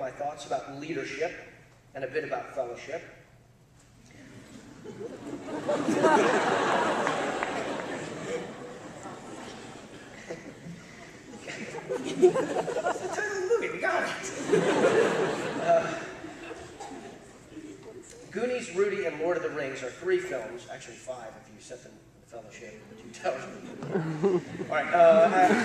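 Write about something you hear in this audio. A man speaks through a microphone in a large hall, pausing now and then.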